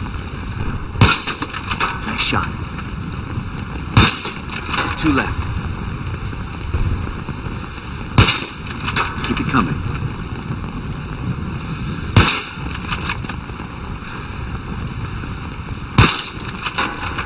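A rifle fires single loud shots, several seconds apart.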